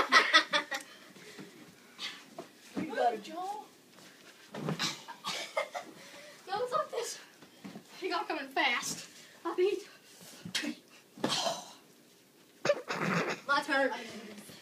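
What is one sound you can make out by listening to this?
Children shout and laugh excitedly close by.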